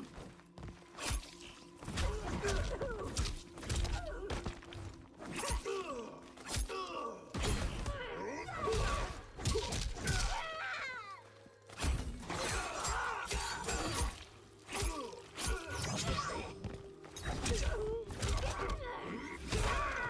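Punches and kicks land with heavy thuds and smacks.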